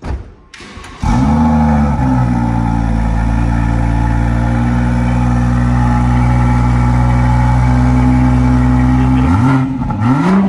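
A car engine starts up and idles with a deep, steady rumble from the exhaust.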